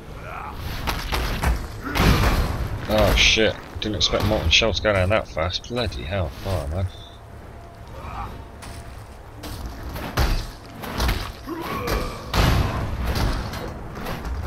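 Weapon blows land with heavy thuds.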